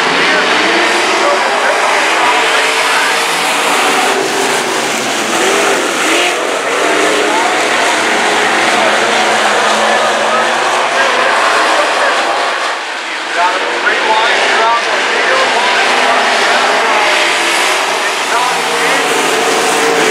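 Stock car engines roar at full throttle as the cars race around a dirt oval.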